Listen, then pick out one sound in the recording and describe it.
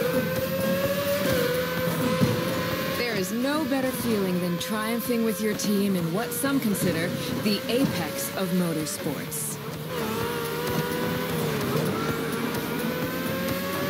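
A racing car engine whines at high revs, its pitch rising and dipping with gear changes.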